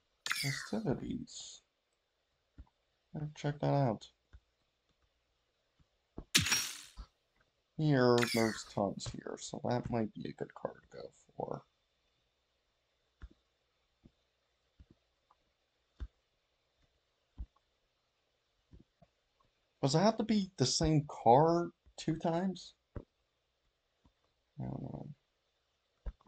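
A young man talks casually into a nearby microphone, in short bursts with pauses.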